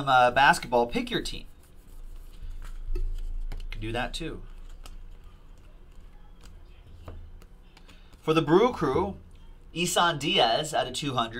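Trading cards shuffle and flick between fingers.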